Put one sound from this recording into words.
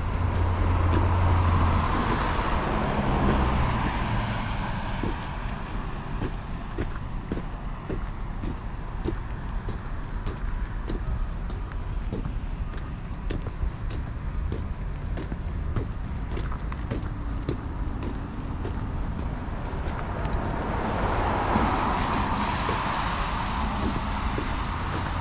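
A car passes by on a nearby road, swelling and fading.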